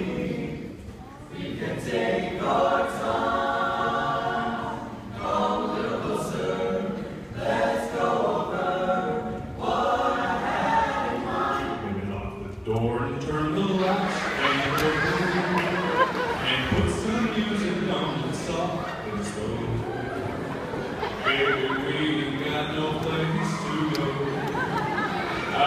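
A choir of young male voices sings together in a large echoing hall.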